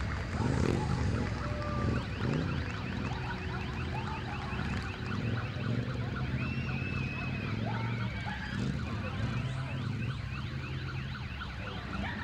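Motorcycle engines idle nearby.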